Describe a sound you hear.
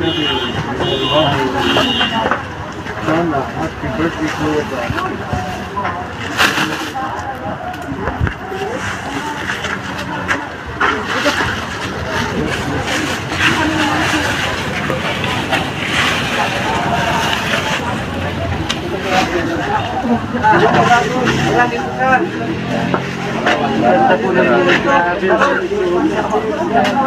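Several men talk outdoors, close by.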